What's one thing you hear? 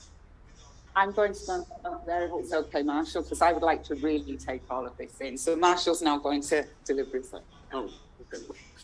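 A woman speaks clearly into a microphone in a large hall.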